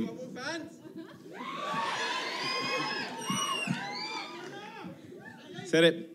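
Men laugh nearby.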